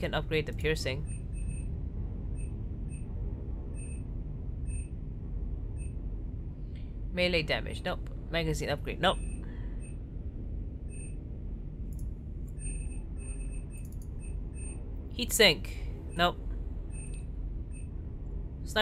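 Short soft electronic blips sound again and again as menu choices change.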